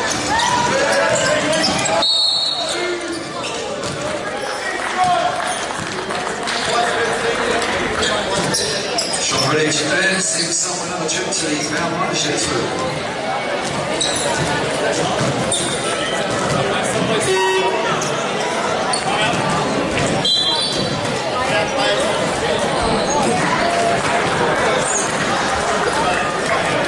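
Sneakers squeak on a wooden court in a large echoing hall.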